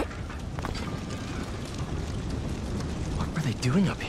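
A large fire crackles and roars.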